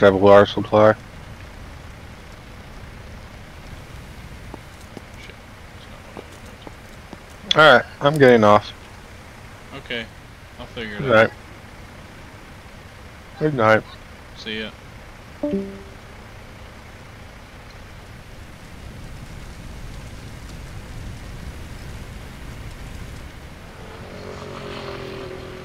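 A fire roars and crackles.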